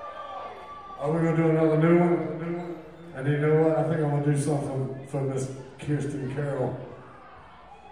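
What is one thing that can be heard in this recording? A man shouts loudly into a microphone over a loudspeaker, in a large echoing hall.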